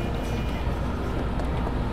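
A car drives past on a nearby street.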